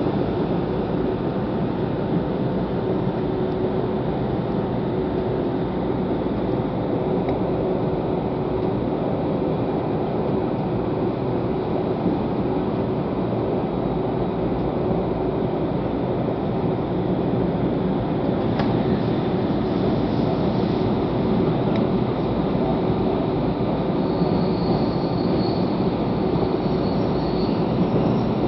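A train rumbles and clatters steadily along the tracks, heard from inside a carriage.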